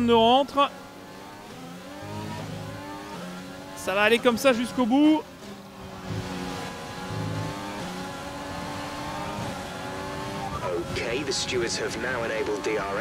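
A racing car engine whines loudly, its pitch rising and falling with the gears.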